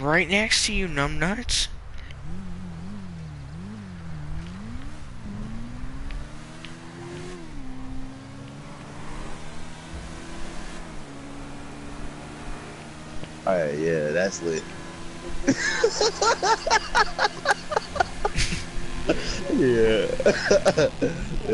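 A motorcycle engine roars, rising and falling as it revs.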